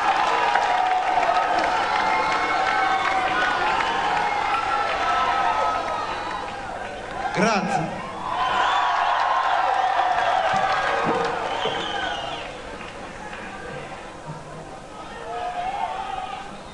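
A rock band plays loudly with drums and electric guitar.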